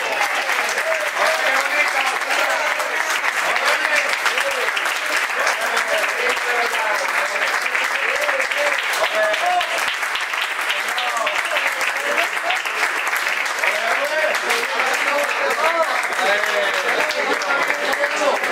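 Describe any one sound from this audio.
A crowd claps and applauds steadily.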